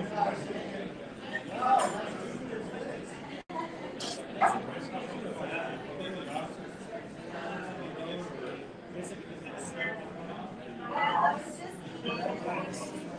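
Several adults chat and talk over one another at a table nearby.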